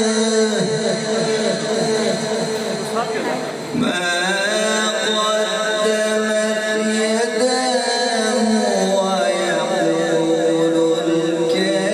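A man sings a long, melodic chant through a microphone and loudspeakers.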